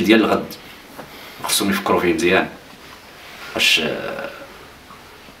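An elderly man speaks calmly and earnestly, close by.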